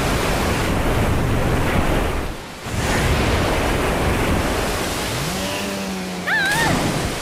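Heavy rain and rough waves roar.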